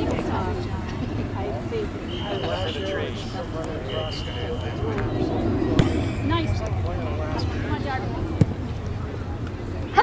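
Women chat quietly nearby, outdoors.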